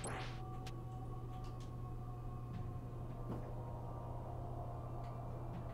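Quiet electronic game music hums steadily.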